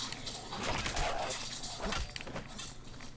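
A heavy blade strikes flesh with a wet thud.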